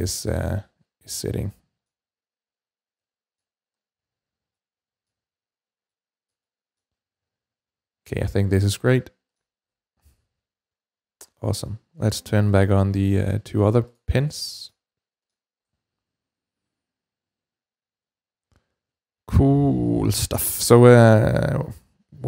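A man talks calmly and clearly into a close microphone, pausing often.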